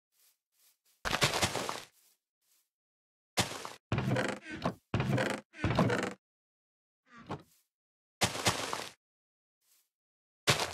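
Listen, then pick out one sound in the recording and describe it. Small plants are set into the ground with soft rustling thuds, one after another.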